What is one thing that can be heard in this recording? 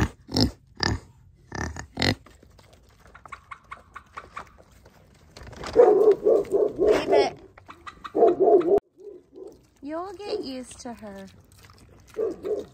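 Pigs grunt and snort up close.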